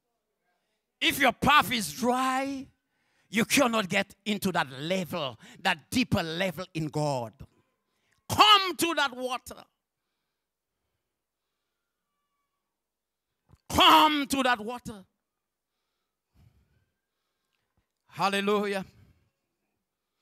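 A man preaches with animation into a microphone, heard through loudspeakers, with pauses between phrases.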